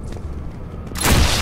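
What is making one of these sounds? A gun fires a loud burst at close range.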